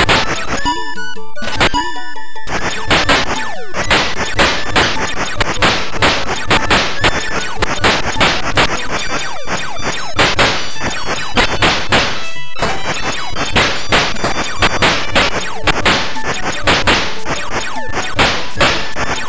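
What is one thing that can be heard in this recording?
Rapid electronic shots fire again and again.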